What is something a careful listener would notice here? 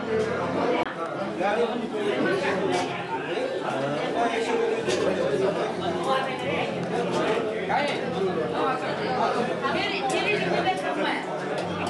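A crowd of men and women chatter in an echoing hall.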